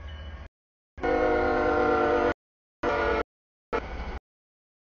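A diesel locomotive sounds its horn at a grade crossing.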